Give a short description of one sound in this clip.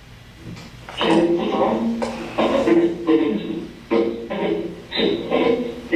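A second man answers in a louder, deeper voice.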